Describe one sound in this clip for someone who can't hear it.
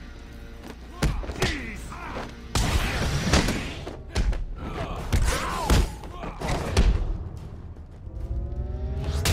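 Punches land with heavy thuds in a fight.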